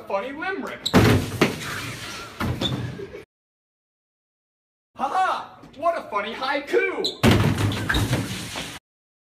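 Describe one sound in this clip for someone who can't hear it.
A person falls and thuds onto a hard floor.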